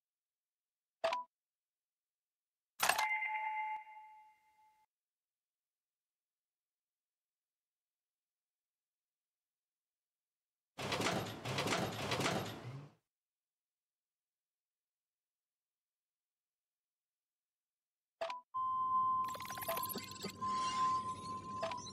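Short electronic game chimes and clicks sound now and then.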